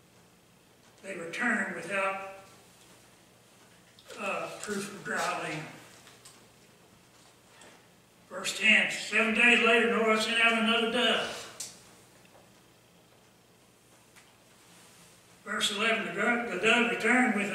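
An elderly man speaks slowly and solemnly into a microphone, with long pauses.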